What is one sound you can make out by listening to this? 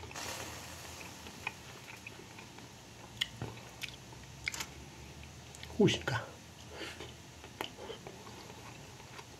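A man chews and smacks his lips close by.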